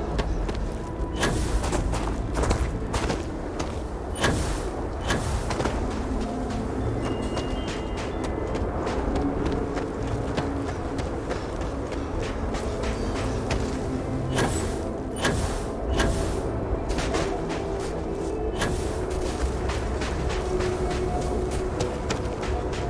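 Footsteps crunch over loose rock at a steady walking pace.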